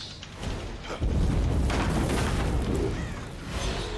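A wooden pallet smashes apart with a loud crash.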